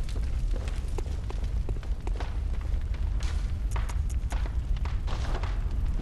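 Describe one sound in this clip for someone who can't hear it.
Footsteps thud on the ground.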